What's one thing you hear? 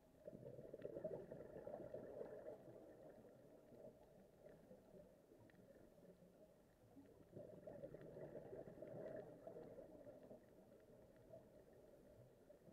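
Muffled water rumbles and swirls all around underwater.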